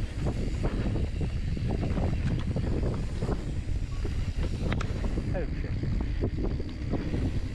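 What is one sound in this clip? A bicycle frame rattles and clanks over bumps.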